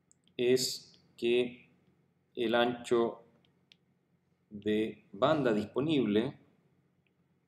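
A middle-aged man speaks calmly and closely into a microphone, in short phrases with pauses.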